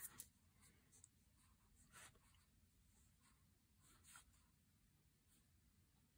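A pen writes on paper.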